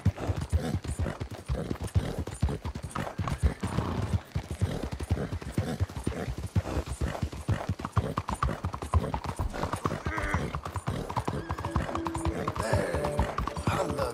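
A horse gallops quickly, its hooves pounding on a hard street.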